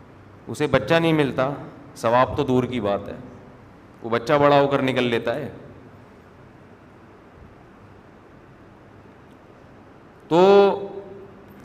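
A middle-aged man speaks calmly into a headset microphone, in short phrases with pauses.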